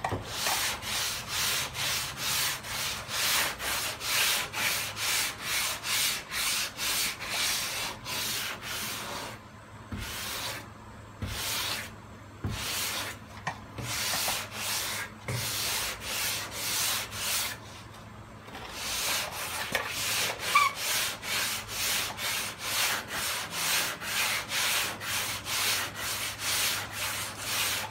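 A sanding block scrapes back and forth over a car body in quick, rhythmic strokes.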